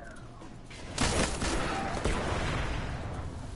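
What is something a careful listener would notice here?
A heavy gun fires a burst of shots.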